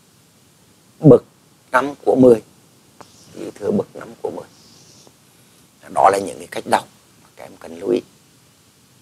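A man speaks calmly into a microphone, explaining in short phrases.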